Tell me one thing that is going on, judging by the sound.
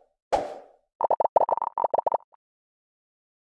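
Small balls tumble and clatter down a slope.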